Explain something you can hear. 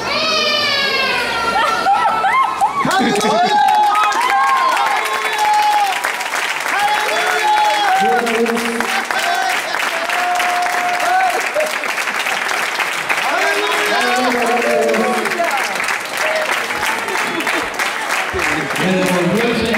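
A crowd of men and women sings together loudly.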